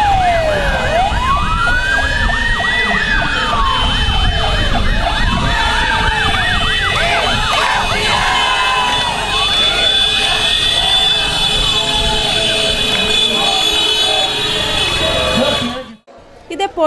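A fire truck siren wails up and down loudly.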